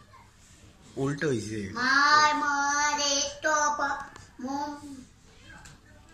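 A boy sings loudly into a close microphone.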